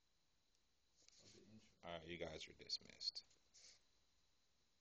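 A man speaks close to the microphone.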